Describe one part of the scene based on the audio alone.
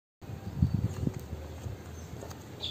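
Footsteps tap on hard paving.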